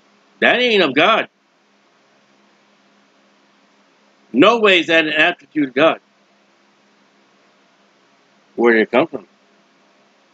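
A man speaks calmly and closely into a microphone, in short bursts.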